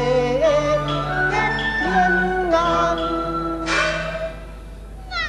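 A man sings in a high, stylised opera voice through a stage microphone.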